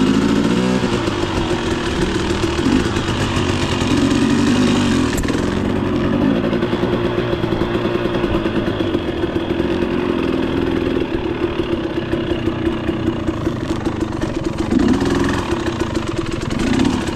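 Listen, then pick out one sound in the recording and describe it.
Tyres crunch over a rough dirt trail.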